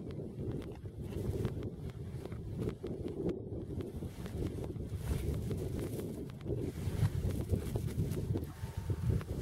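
Ice crackles softly as a man handles a net.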